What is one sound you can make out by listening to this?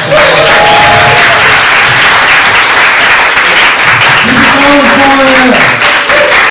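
A large crowd claps and applauds loudly.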